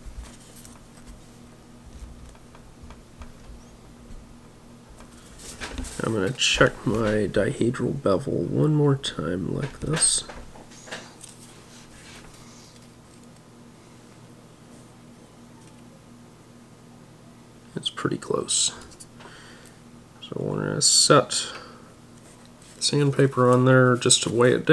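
Paper rustles softly as a model is handled.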